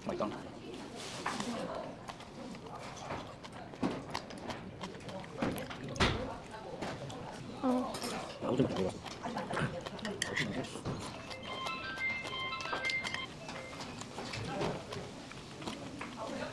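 A young woman slurps noodles up close.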